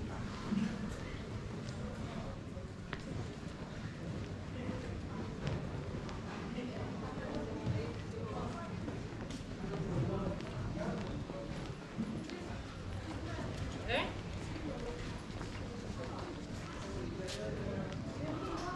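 People talk in the distance, heard outdoors in an open alley.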